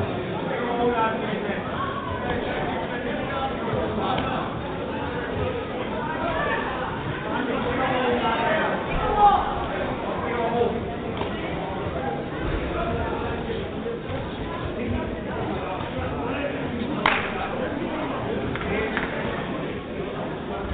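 Spectators shout and call out in an echoing hall.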